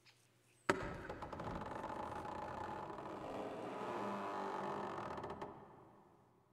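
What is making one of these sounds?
A large wooden door creaks and swings open, echoing.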